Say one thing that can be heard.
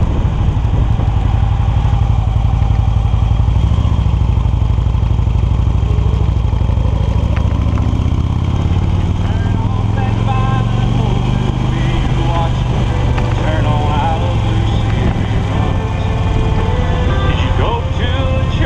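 Wheels roll steadily over asphalt.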